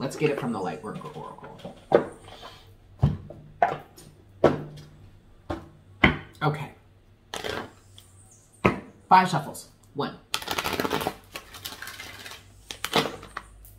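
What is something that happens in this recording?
Cardboard packaging rustles and taps in a man's hands.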